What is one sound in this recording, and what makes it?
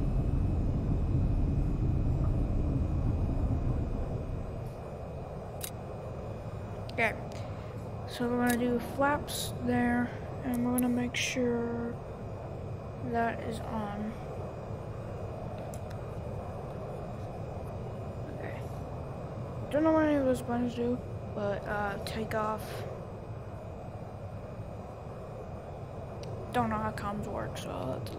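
A jet engine rumbles steadily, louder at first and then quieter.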